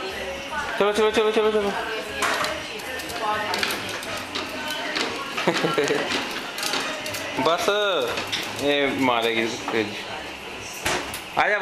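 Plastic wheels of a toy car rattle and roll across a hard floor.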